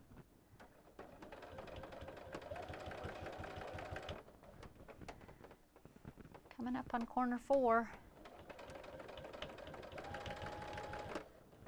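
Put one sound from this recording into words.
A sewing machine hums and whirs steadily as it stitches.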